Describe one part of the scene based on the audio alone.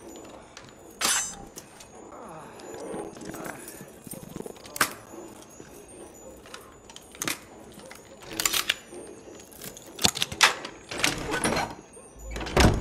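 Metal lock parts click sharply as a lock is picked.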